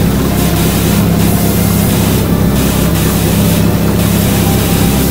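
A pressure washer sprays water in a steady, loud hiss over a low hum.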